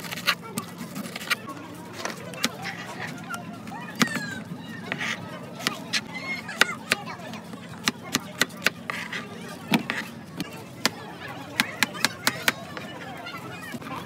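A knife taps against a cutting board while slicing fruit.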